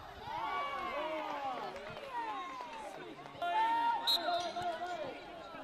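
Young players shout and call to each other across an open outdoor field.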